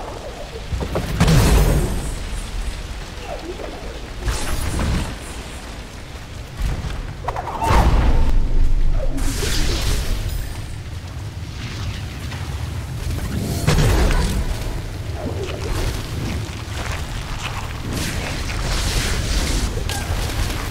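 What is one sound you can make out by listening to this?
Magical whooshes and bursts of impact sound in quick flurries.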